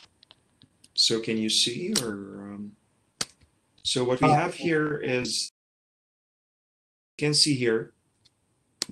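A man speaks calmly in short phrases through a microphone on an online call.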